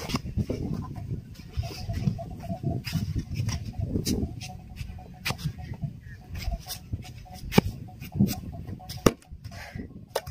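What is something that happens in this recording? A shovel scrapes and digs into gritty soil.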